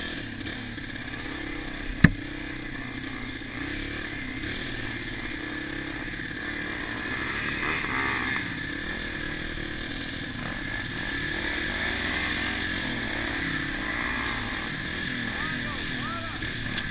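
A small dirt bike engine hums steadily up close.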